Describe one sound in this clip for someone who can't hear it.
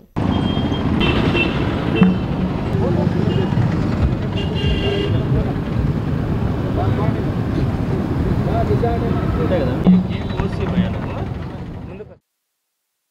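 A crowd of men chatters and calls out loudly outdoors.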